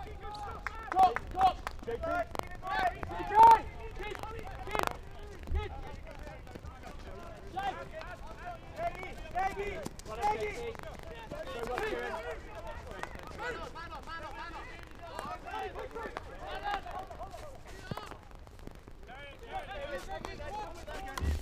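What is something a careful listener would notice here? Hockey sticks crack against a ball.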